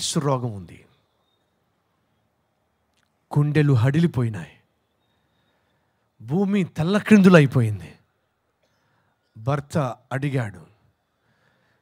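A man speaks into a microphone with feeling, in short phrases separated by pauses.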